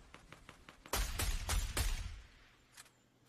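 A sniper rifle fires with a loud boom.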